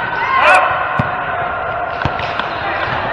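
A volleyball is struck with a hand in an echoing hall.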